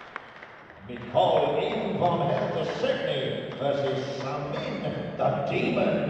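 A man speaks loudly through a microphone and loudspeakers in a large echoing hall.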